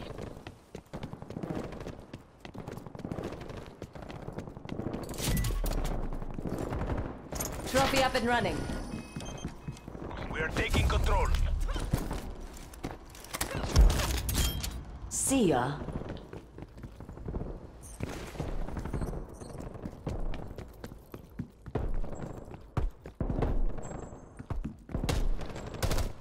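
Footsteps patter quickly on hard floors.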